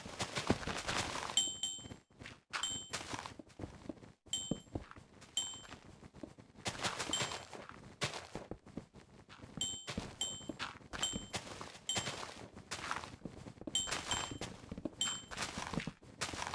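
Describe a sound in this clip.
Blocks land and break with quick, sharp knocks and pops.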